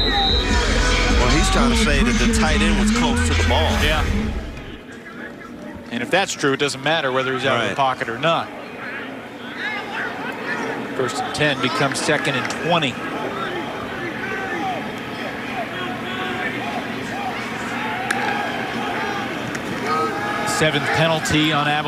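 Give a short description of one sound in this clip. A crowd murmurs and cheers in a large open stadium.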